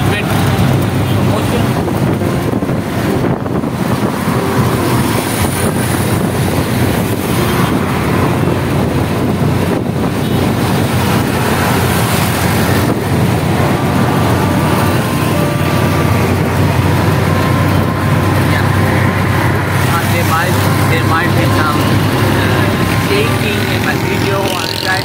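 Traffic rushes past on a road.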